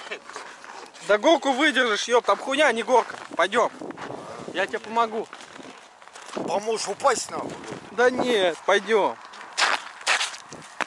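An older man speaks nearby outdoors.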